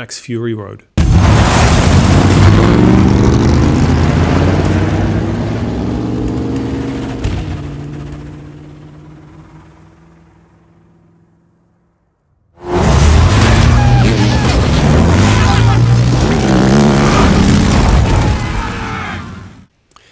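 A powerful vehicle engine roars and revs loudly.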